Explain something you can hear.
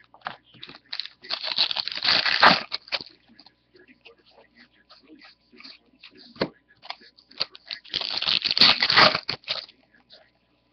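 Trading cards flick and rustle as a stack is riffled through by hand.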